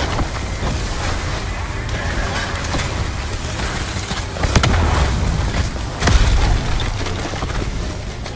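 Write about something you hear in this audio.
A ray gun fires bursts of energy shots.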